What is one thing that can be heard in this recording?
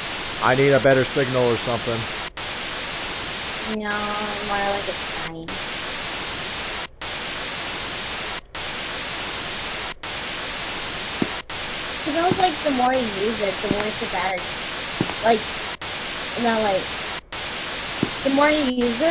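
A handheld radio hisses with steady static, broken by brief dropouts.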